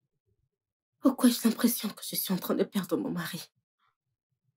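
A woman speaks close by.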